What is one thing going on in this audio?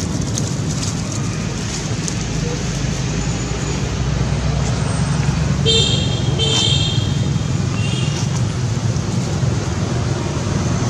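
A monkey walks through grass and dry leaves.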